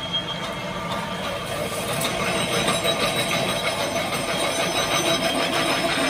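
Workshop machinery hums and whirs steadily.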